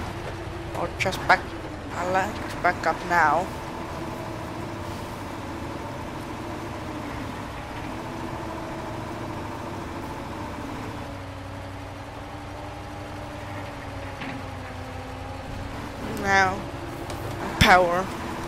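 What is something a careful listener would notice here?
A truck engine rumbles steadily as it crawls over rough ground.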